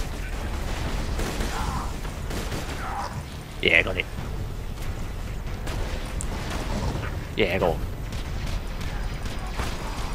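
Gunshots fire in bursts.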